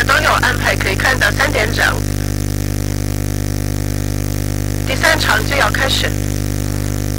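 A middle-aged man speaks calmly into a microphone, heard through a loudspeaker.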